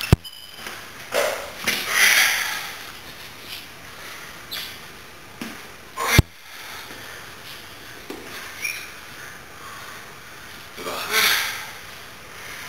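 A young man groans and shouts loudly with effort, close by.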